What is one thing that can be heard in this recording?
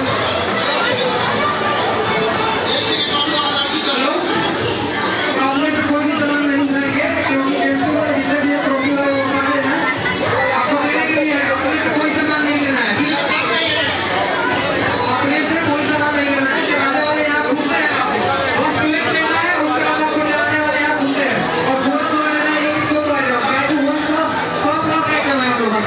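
A large crowd chatters loudly in an echoing hall.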